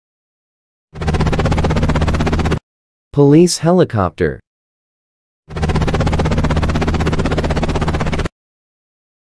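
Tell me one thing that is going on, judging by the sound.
A helicopter's rotor thumps and whirs steadily.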